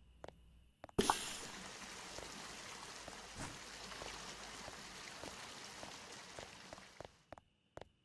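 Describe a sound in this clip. A spray hisses loudly and steadily, then stops.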